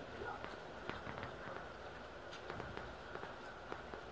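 A relay clicks once.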